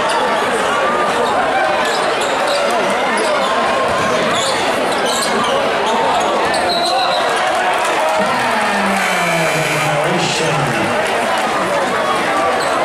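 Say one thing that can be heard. A large crowd cheers and chants loudly in an echoing gym.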